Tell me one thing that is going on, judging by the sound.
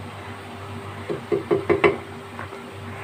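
A wooden spatula scrapes and stirs thick sauce in a pan.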